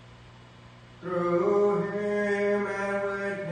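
A man chants in a sung voice through a microphone.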